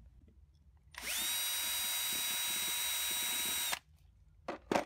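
A cordless drill whirs loudly at high speed through wood.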